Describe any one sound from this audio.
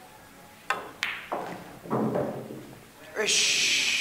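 Pool balls knock together and roll.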